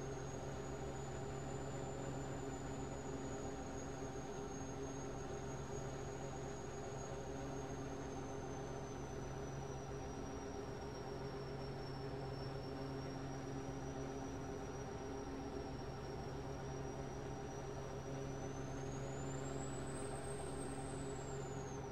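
Tyres roll on a motorway.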